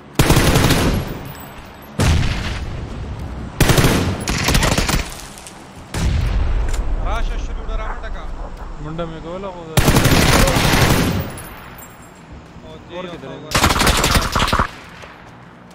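Gunshots crack and boom close by, in short bursts.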